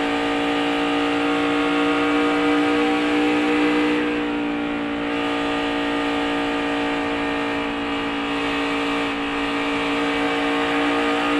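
A race car engine roars loudly at high, steady speed close by.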